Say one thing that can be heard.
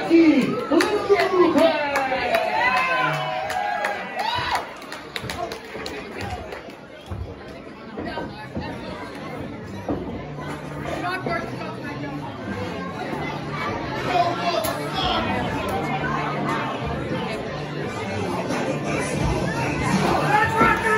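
A small crowd cheers and chatters in the hall.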